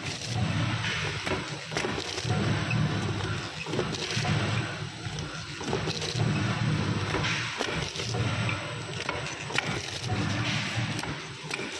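A packaging machine runs with a steady, pulsing hum.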